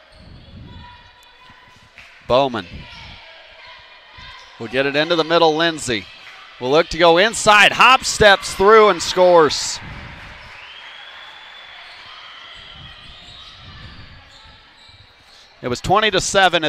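A basketball bounces on the court floor.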